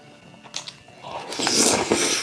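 A young man slurps noodles loudly close to a microphone.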